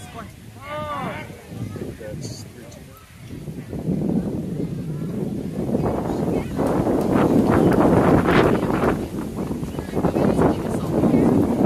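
Wind rumbles and gusts across the microphone outdoors.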